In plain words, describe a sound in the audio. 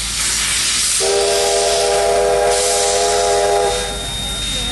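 A steam locomotive whistle blows.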